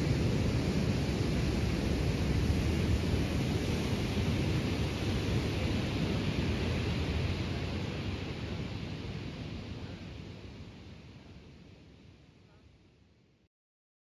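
Waves wash onto a beach and slowly fade.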